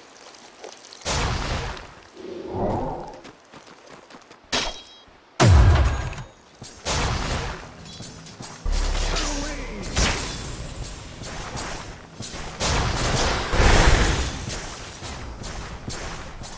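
Game spell effects crackle and burst in a fight.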